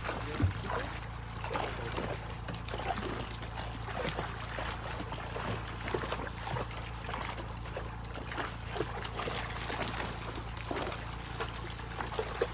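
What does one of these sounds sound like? Water sprays hard and splashes against a wall.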